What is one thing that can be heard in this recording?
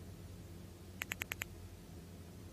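A short run of quick electronic chimes sounds.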